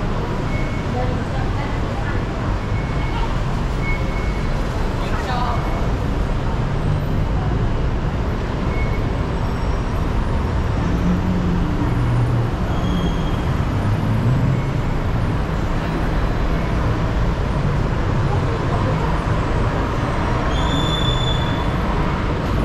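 Footsteps walk steadily along a hard walkway.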